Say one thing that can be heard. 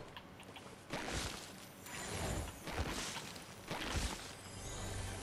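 A pickaxe strikes a plant with sharp whacks.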